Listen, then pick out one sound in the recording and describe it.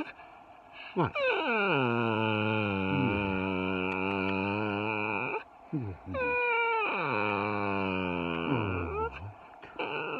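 A small dog howls close by in long, wavering cries.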